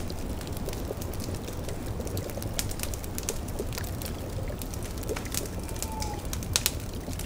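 A cauldron bubbles softly.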